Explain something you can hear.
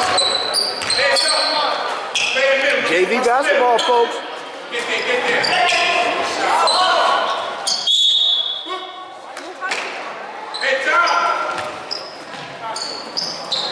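Young men shout and call out in an echoing gym.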